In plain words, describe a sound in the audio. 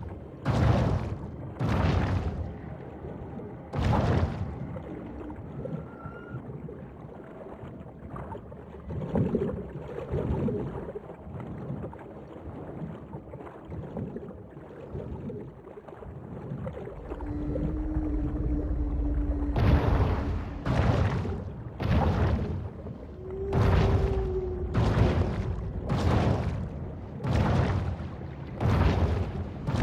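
A large fish swishes its tail with whooshing bursts as it swims.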